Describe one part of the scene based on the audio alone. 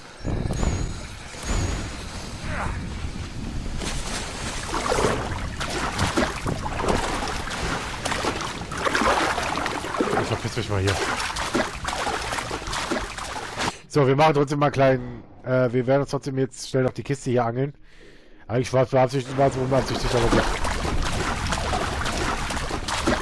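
Water sloshes and splashes as someone wades through it.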